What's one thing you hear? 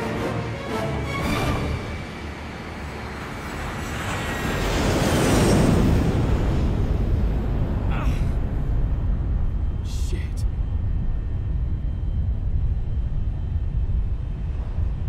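Propeller aircraft engines drone loudly.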